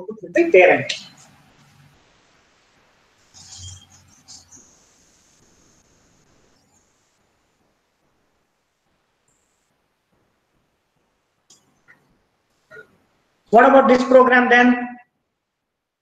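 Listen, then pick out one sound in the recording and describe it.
A man speaks in short bursts, lecturing.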